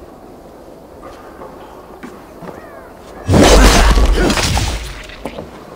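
Weapons clash and strike in a fight, with a loud burst of heavy blows.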